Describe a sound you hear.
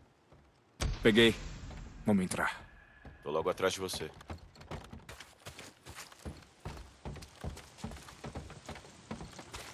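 Footsteps crunch on debris.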